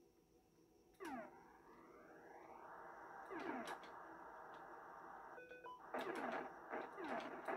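A video game plays a steady electronic engine drone.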